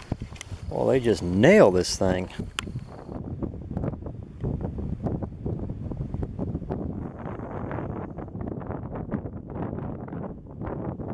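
Wind gusts loudly across the microphone outdoors.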